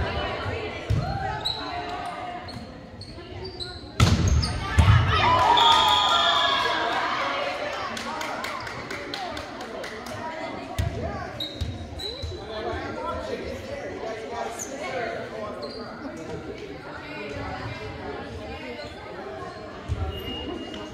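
A volleyball is struck with sharp smacks in a large echoing gym.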